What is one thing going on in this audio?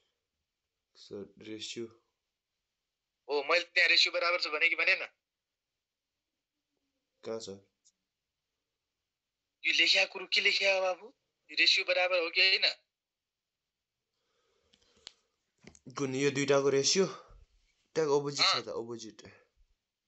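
A young man speaks calmly in bursts over an online call, pausing between phrases.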